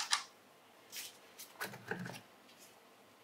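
A plastic housing cover clatters as it is pulled off.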